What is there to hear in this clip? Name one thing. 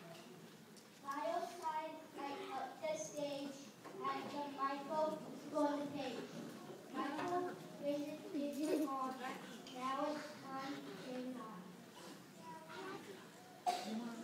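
Children's voices recite together loudly in a large echoing hall.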